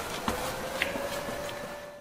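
Footsteps run on paving stones.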